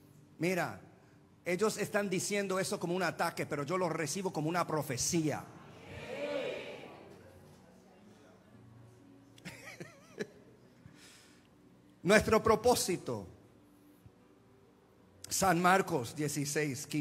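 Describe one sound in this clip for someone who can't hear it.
A middle-aged man speaks with animation into a microphone, heard through loudspeakers in a large room.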